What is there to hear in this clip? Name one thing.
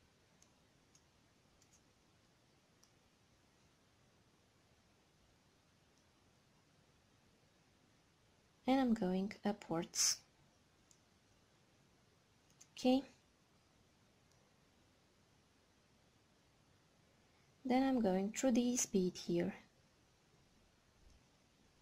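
Glass beads click softly against each other on a thread.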